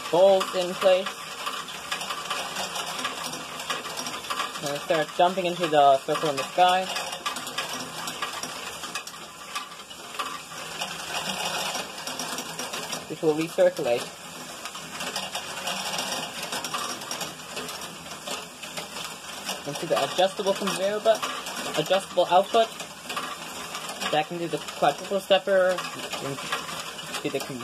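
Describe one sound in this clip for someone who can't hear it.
Plastic balls roll and clatter steadily along a toy machine's tracks.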